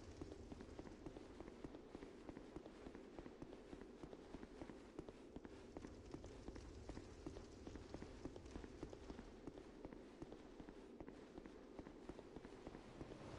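Armoured footsteps run quickly over stone, echoing in a large hall.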